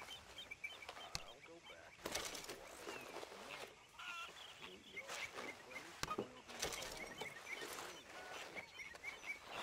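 Small items are picked up with short clattering rustles.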